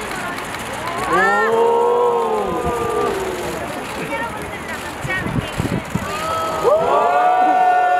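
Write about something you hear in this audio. Young women call out and cheer loudly nearby, outdoors.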